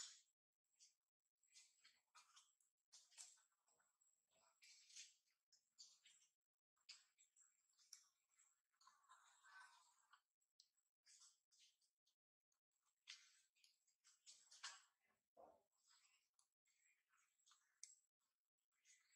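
A baby monkey suckles softly.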